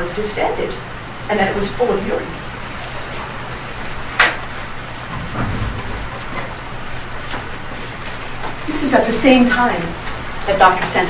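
A woman speaks calmly at a distance in a large room.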